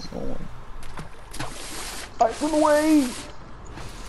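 A splash sounds as something plunges into water.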